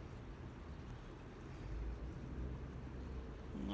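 Fingers press softly into loose soil.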